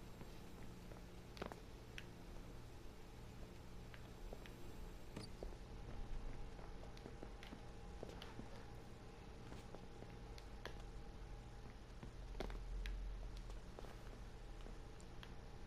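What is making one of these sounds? Soft footsteps patter on a hard floor.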